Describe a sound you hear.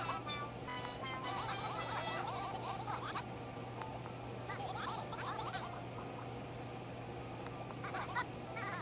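Quick, high electronic chirps babble in bursts from a handheld game's speaker.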